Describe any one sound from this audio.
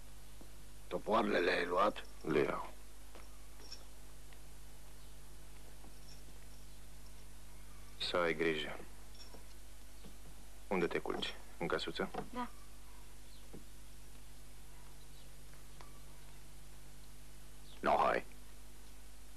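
A man speaks in short, firm phrases close by.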